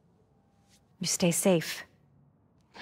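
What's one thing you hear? A woman speaks warmly and softly up close.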